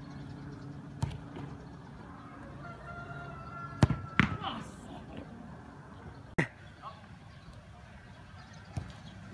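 A football is kicked with sharp thuds outdoors.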